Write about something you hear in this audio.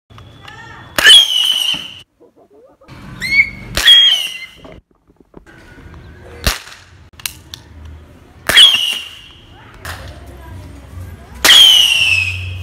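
A toy cap gun fires sharp, loud bangs one at a time outdoors.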